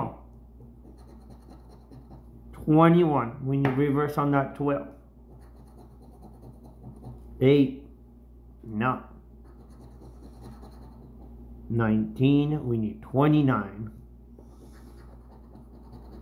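A coin scratches across a card.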